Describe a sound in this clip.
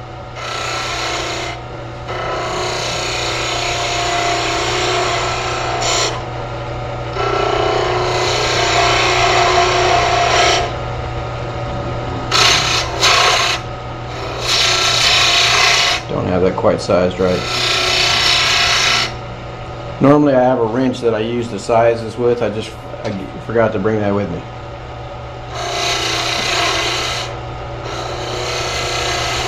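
A chisel scrapes and hisses against spinning wood in bursts.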